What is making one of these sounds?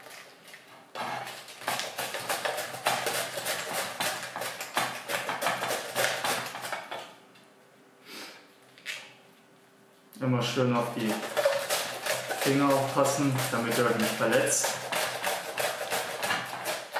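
Cabbage is grated rapidly on a grater with rasping strokes.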